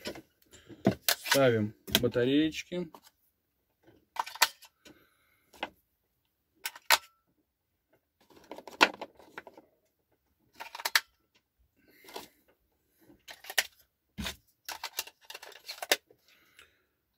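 Plastic parts click and tap as a man handles them.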